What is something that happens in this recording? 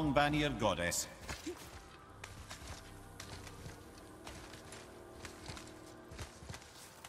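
Hands and boots scrape and knock against rock during a climb.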